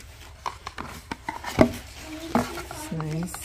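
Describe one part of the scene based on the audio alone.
A hard plastic case clicks and taps under fingers.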